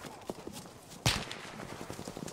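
A gunshot cracks loudly nearby.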